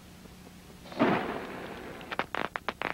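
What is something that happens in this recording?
Fireworks burst with a loud bang.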